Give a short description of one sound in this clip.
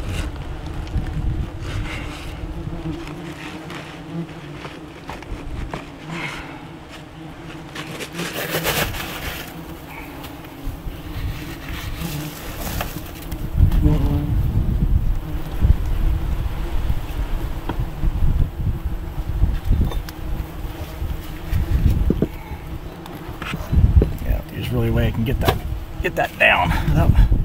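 A tool scrapes and crackles against a dry, papery nest.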